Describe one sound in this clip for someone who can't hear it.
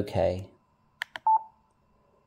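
A button on a radio clicks twice.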